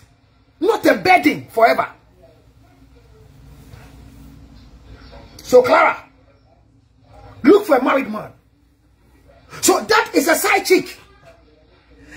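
A man speaks with animation in short bursts, close to the microphone.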